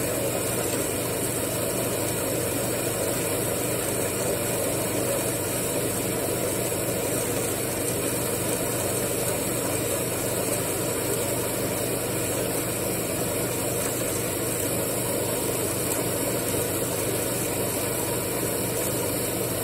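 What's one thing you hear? A power hacksaw cuts steadily through metal with a droning hum.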